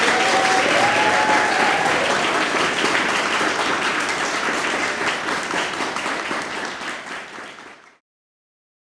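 An audience claps in an echoing hall, fading out.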